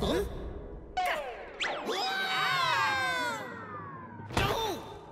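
A shimmering magical chime rings out and slides down in pitch.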